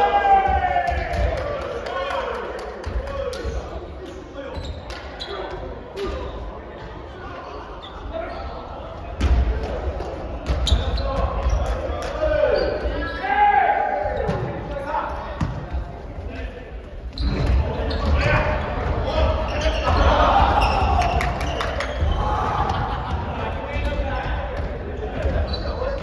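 A volleyball is struck by hands.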